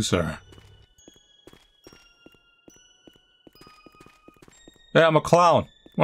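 Footsteps tap softly along a street.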